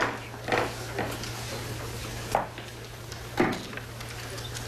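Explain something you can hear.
A man's footsteps thud on wooden stairs.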